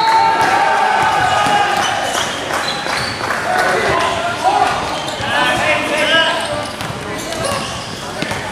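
Spectators talk in an echoing gym.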